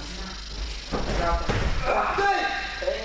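A body thuds heavily onto a mat.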